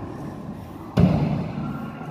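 A foot thuds on a wooden floor.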